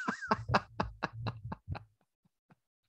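A man laughs in short bursts close to a microphone.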